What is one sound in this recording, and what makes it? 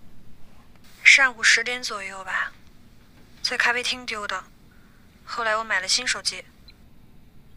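A man's voice answers faintly through a phone.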